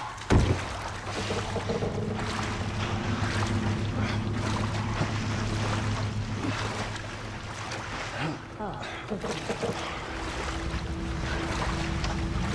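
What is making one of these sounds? Water splashes steadily as a swimmer paddles through it.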